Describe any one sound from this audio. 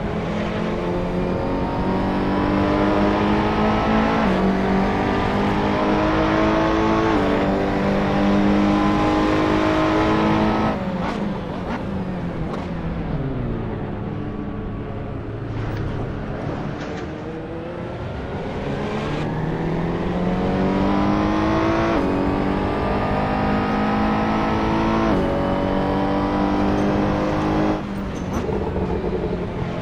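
A race car engine roars at high revs, rising and shifting through the gears.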